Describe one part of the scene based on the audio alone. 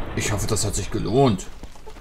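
A blast booms.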